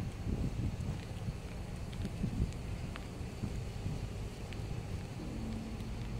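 A parked truck's engine idles nearby.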